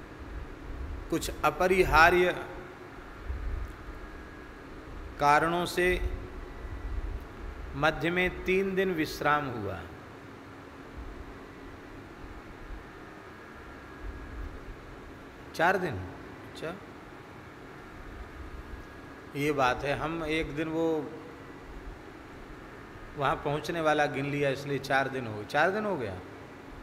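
A man speaks calmly into a microphone in short phrases with pauses.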